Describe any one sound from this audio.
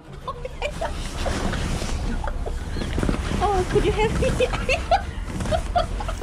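Nylon fabric rustles as a person moves inside a tent.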